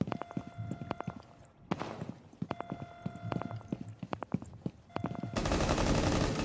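Short electronic beeps chirp in quick bursts.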